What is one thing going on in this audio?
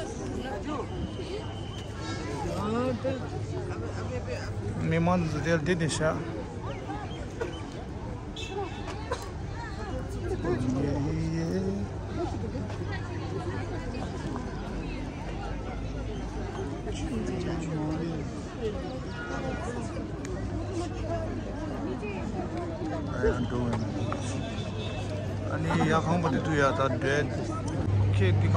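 A crowd of men and women chatters outdoors all around.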